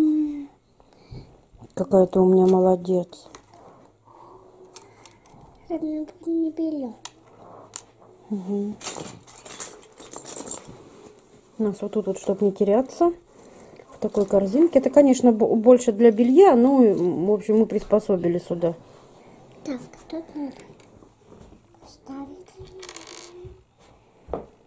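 A small child speaks softly close by.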